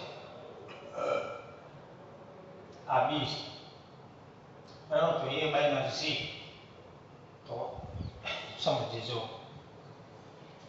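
An adult man speaks in short bursts through a clip-on microphone, explaining calmly.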